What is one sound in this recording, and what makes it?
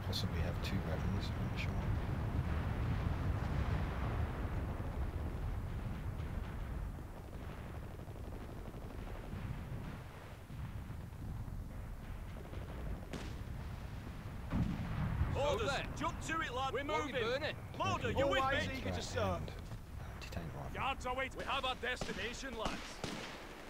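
Distant gunfire and explosions rumble in a battle.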